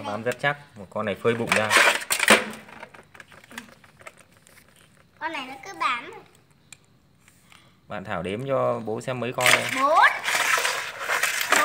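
A child talks excitedly nearby.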